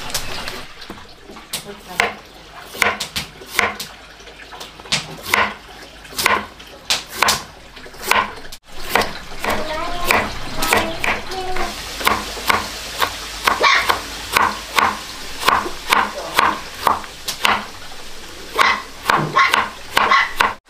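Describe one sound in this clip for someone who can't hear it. A knife cuts through a crisp vegetable and taps a wooden board in quick, even strokes.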